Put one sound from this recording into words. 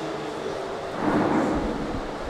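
A man speaks briefly into a held microphone.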